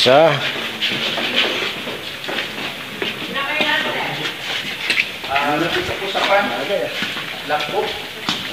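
Young people shout and call out excitedly in a large echoing hall.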